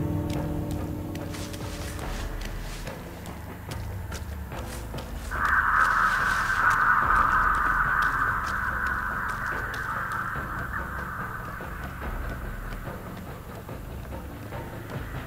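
Heavy footsteps thud slowly on the ground.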